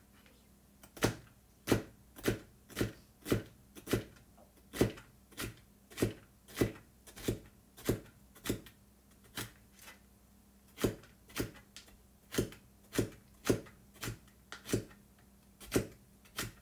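Hands make sharp, steady taps close by, about twice a second.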